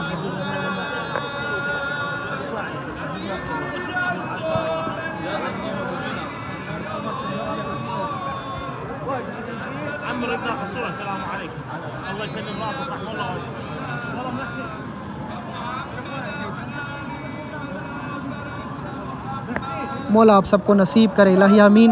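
A crowd of men murmur and talk in a large echoing hall.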